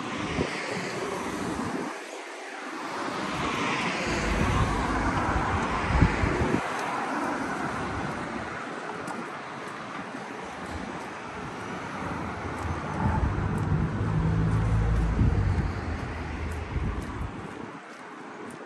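Traffic rumbles past on a nearby road.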